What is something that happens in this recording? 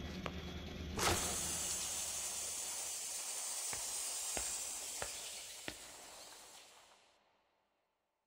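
Steam hisses loudly from a machine.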